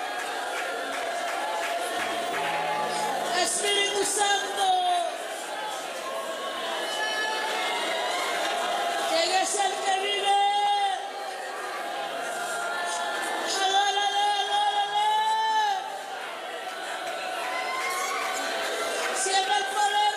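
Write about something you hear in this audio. A man sings through a microphone over loudspeakers.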